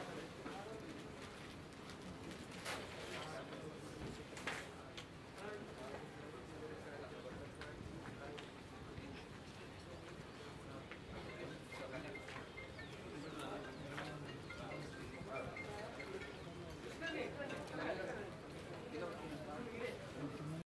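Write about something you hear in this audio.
A crowd of men talks and murmurs nearby.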